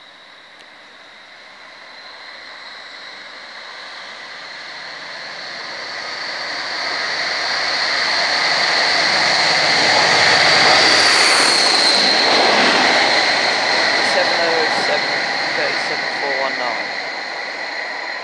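A diesel locomotive approaches, roars loudly past close by and rumbles away.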